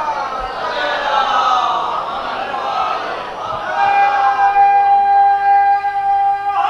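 A man recites in a drawn-out, singing voice through a microphone and loudspeakers.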